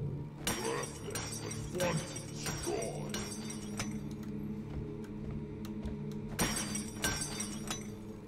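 Crystal shards shatter and tinkle as they scatter.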